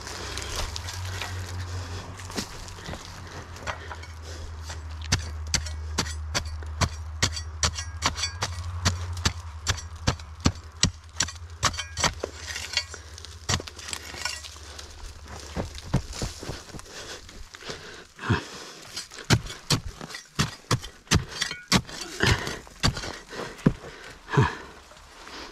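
A pick axe chops repeatedly into hard dirt and stone.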